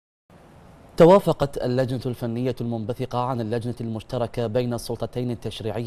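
A man speaks calmly and clearly into a microphone, like a news presenter.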